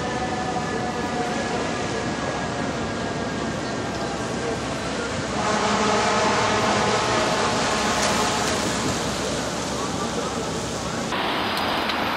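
A fire engine's horn blares loudly.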